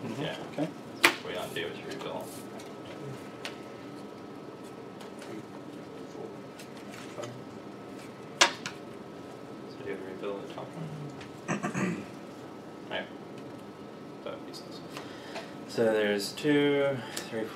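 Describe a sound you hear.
Cards click and snap as they are handled and laid on a table.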